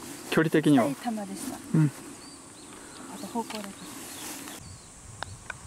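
A young woman talks calmly and close by, outdoors.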